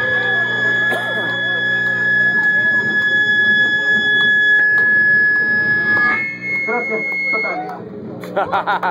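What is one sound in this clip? Drums and cymbals are played loudly in a small room.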